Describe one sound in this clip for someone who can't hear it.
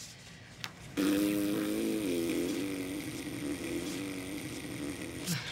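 A young woman hums a low, drawn-out note.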